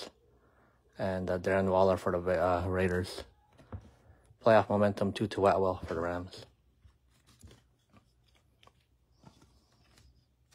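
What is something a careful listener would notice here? Trading cards slide and tap softly as they are handled and set down.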